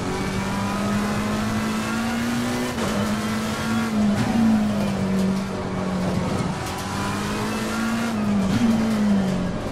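A racing car engine roars steadily, its pitch rising and dropping with gear shifts.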